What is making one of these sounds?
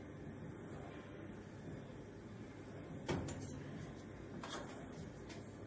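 A ventilation fan hums steadily.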